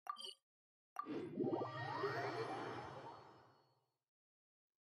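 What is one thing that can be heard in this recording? A shimmering magical chime swells and fades away.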